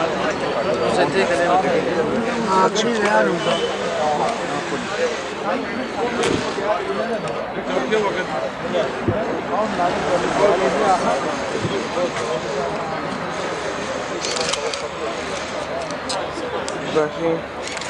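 Several men talk at once close by, outdoors.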